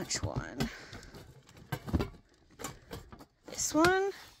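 Hard plastic knocks and rattles as it is handled.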